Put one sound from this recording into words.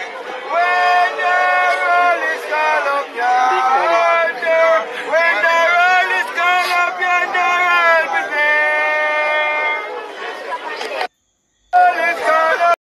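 A crowd of men and women sings together outdoors.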